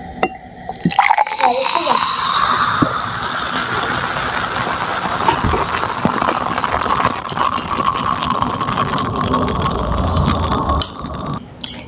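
Juice pours from a bottle into a glass, gurgling and rising in pitch as it fills.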